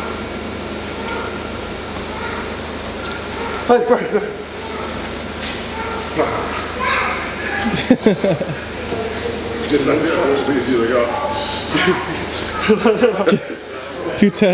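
Two men talk and joke with animation close by.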